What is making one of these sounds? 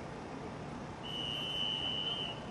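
A referee blows a long, steady whistle.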